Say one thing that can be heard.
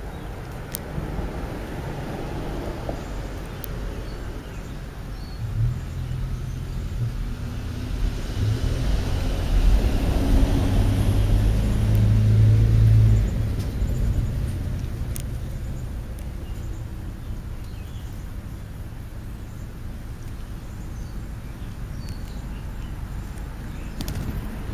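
Birds peck at food close by with light taps.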